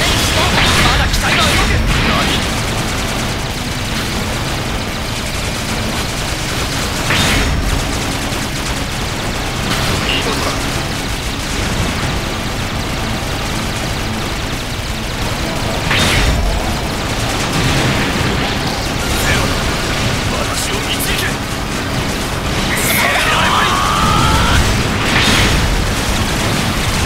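Heavy guns fire in quick bursts.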